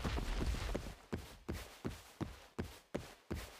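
Quick footsteps patter at an even pace.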